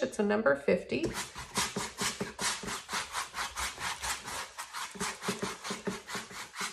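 A wide flat brush scrubs back and forth on canvas.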